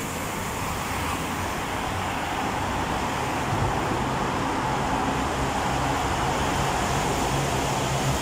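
A motor pump hums steadily, growing louder as it comes closer.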